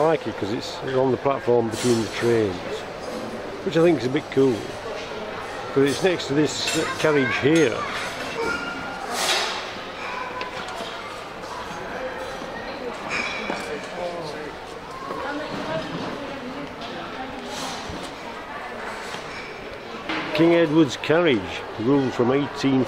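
A man talks calmly and close by, his voice slightly muffled.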